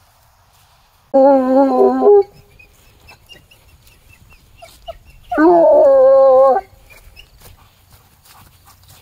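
A dog's paws rustle through grass.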